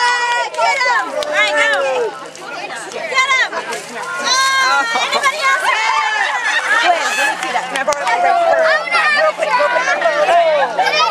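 A crowd of young people talk and shout excitedly close by, outdoors.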